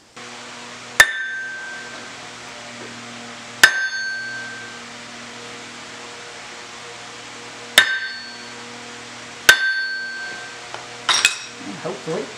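A mallet taps sharply on metal, ringing briefly.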